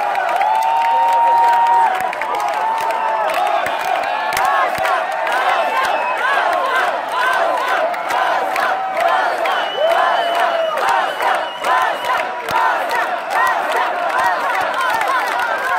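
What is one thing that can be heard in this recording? A crowd screams and cheers loudly in a large echoing hall.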